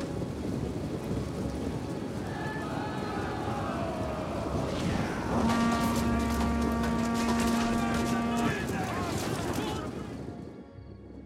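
Soldiers clash in battle with a roar of noise.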